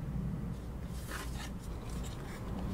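Cloth rustles softly as fingers rub it.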